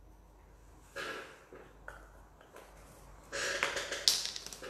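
Small plastic pots knock and clatter as they are moved.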